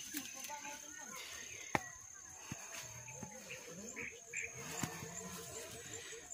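Men talk at a distance outdoors.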